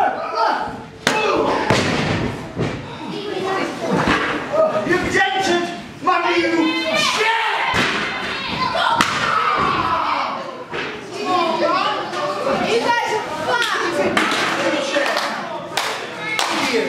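Bodies slam onto a wrestling ring's canvas with loud thuds.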